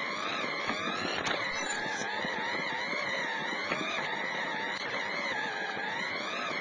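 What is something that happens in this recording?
An electric motor whines, its pitch rising and falling gently.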